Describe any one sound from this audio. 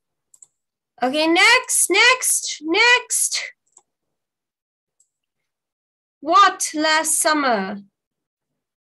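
A young girl speaks in short phrases over an online call.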